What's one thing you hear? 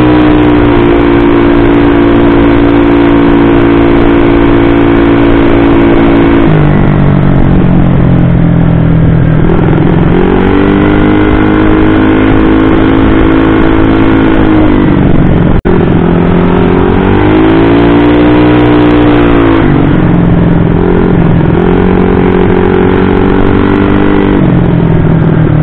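A single-cylinder automatic scooter engine revs up and eases off while riding along a road.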